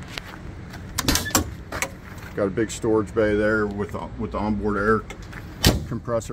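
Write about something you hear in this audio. A metal toolbox lid clanks as it opens and shuts.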